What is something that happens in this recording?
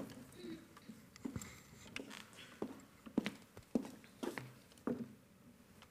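Footsteps cross a stage.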